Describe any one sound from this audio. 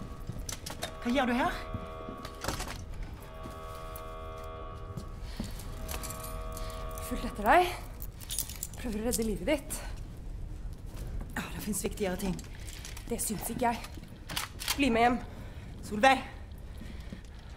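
A woman speaks quietly and tensely.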